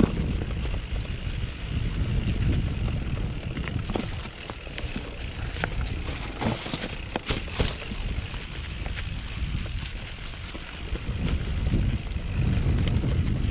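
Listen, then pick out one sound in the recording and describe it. Bicycle tyres crunch over dry leaves and dirt.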